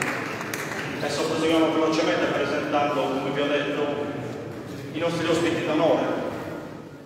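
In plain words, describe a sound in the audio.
A man speaks with animation through a microphone in an echoing hall.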